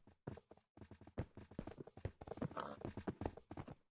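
Wolves growl.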